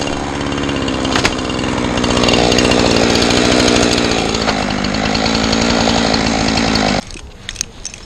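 A chainsaw roars loudly at close range, then stops abruptly.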